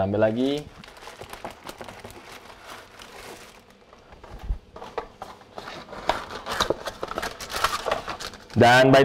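Packets and jars rattle and clatter as a man rummages through a cupboard.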